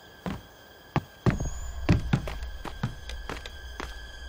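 Footsteps crunch slowly on gravel.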